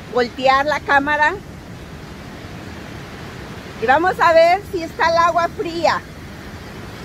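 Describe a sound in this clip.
A middle-aged woman speaks close by, cheerfully.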